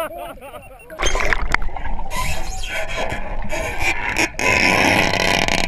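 A shark thrashes against a metal cage underwater, churning the water.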